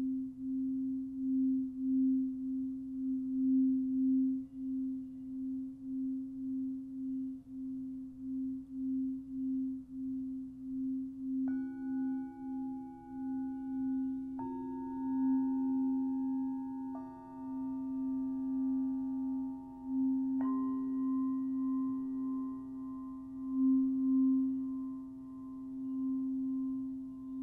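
A crystal singing bowl hums with a steady, pulsing drone.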